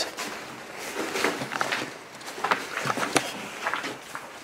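A man speaks quietly, close by.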